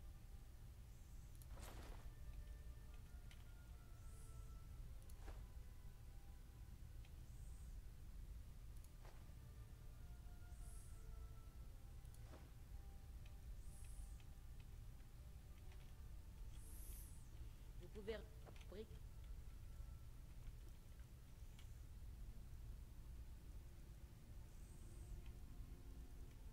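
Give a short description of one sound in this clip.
Soft, short menu swishes sound now and then as items are scrolled through.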